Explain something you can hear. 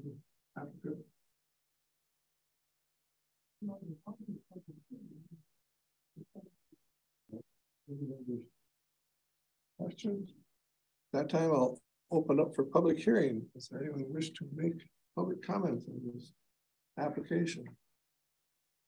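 A man speaks calmly over a microphone, with long pauses.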